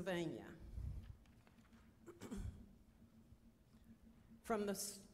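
An elderly woman speaks slowly and solemnly through a microphone in an echoing hall.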